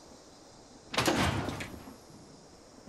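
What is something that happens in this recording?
A suit of heavy armour hisses open with a loud burst.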